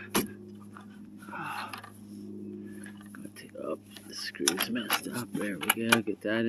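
Plastic parts click and snap as a hand works a latch.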